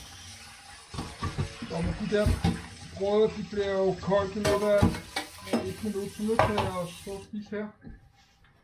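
Dishes clatter and clink in a sink.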